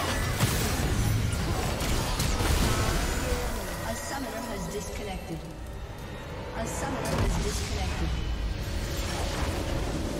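Game spell effects crackle and boom in a fight.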